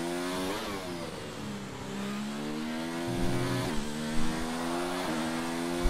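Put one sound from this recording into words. A racing car engine whines loudly, its pitch rising and dropping sharply at each gear change.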